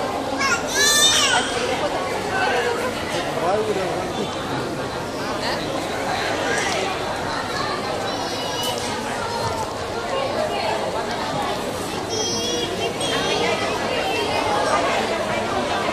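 A crowd of men and women chatter nearby in an echoing hall.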